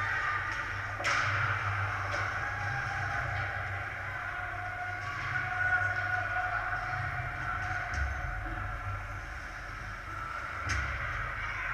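A hockey stick knocks a puck with a sharp crack.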